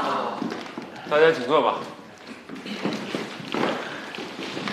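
A man speaks up to a group in a large echoing hall.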